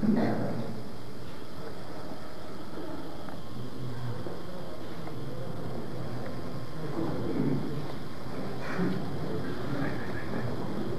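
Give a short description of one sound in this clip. A crowd of men and children murmurs quietly.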